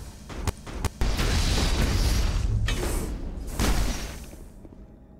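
A heavy blast booms and rumbles.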